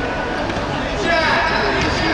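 A futsal ball is kicked in an echoing indoor hall.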